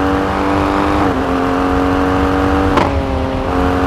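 A four-wheel-drive SUV engine shifts up a gear with a brief dip in revs.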